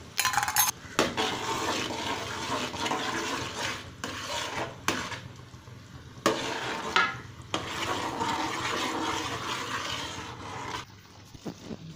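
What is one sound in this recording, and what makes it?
Hot liquid sizzles and bubbles in a pot.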